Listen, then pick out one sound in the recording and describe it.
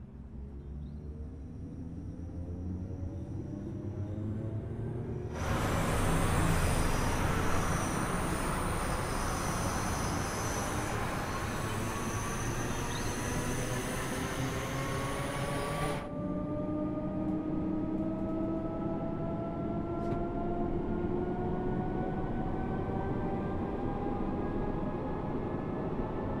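An electric train motor whines, rising steadily in pitch as it speeds up.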